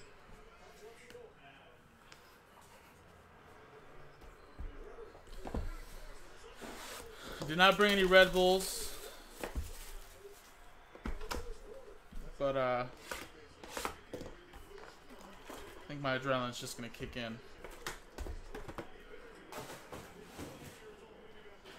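Cardboard boxes rustle and tap as hands handle them.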